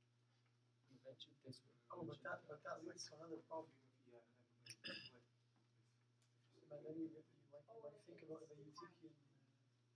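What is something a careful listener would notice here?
An elderly man speaks quietly nearby.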